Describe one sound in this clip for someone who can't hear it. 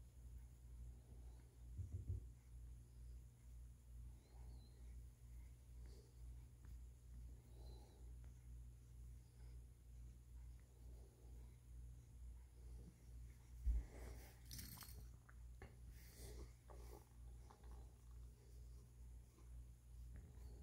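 A cat purrs loudly and steadily up close.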